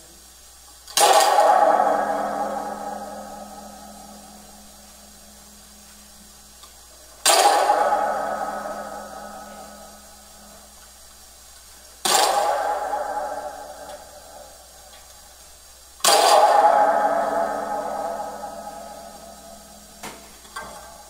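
A bell is struck several times, each strike ringing out and slowly fading.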